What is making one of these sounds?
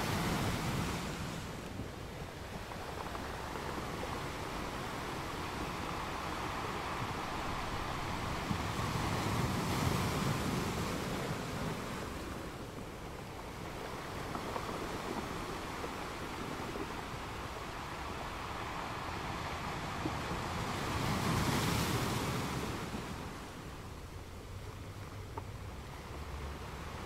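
Ocean waves crash and break over rocks in surging rushes.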